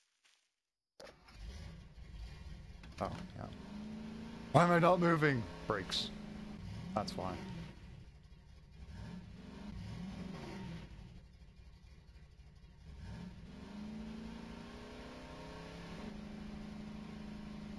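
An engine idles and revs up and down.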